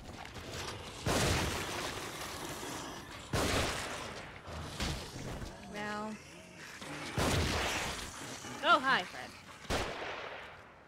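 Gunshots crack loudly in a video game.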